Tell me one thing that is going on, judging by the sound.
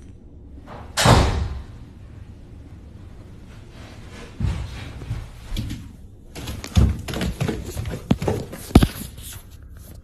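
Footsteps thud down wooden stairs.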